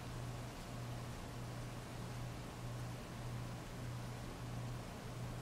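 Heavy rain pours steadily and splashes on wet pavement outdoors.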